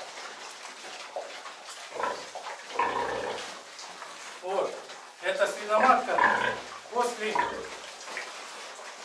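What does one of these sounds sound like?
Pigs grunt and snort close by.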